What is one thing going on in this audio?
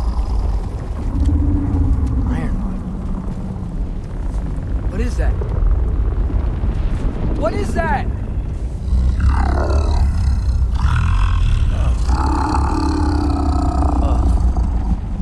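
A strong wind howls and rumbles low and steady.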